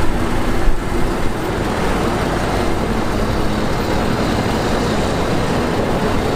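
A bulldozer's diesel engine rumbles steadily.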